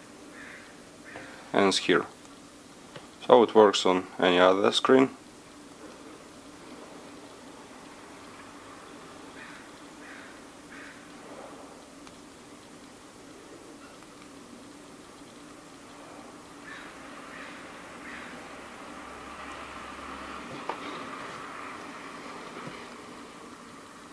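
Fingers tap lightly on a phone's touchscreen.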